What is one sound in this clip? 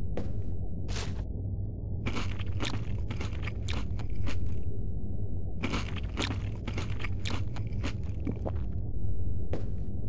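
A man chews and munches on food up close.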